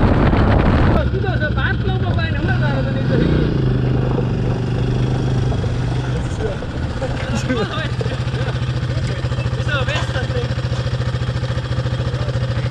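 A quad bike engine hums steadily nearby.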